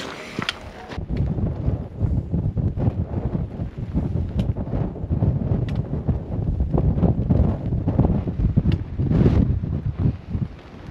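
Wind gusts outdoors and buffets loudly.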